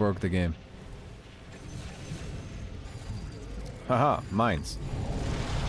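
A young man speaks excitedly into a close microphone.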